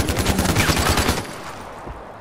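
A gun fires loudly several times.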